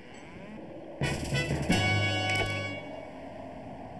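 A soft interface chime rings out with a clatter.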